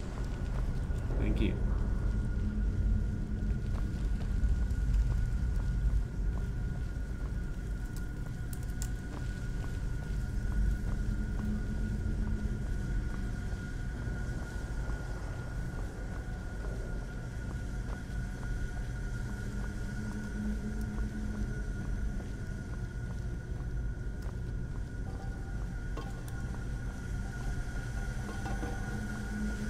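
A young person speaks calmly into a close microphone.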